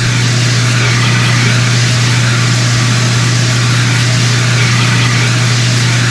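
Water sprays in a steady rushing hiss from fire hoses.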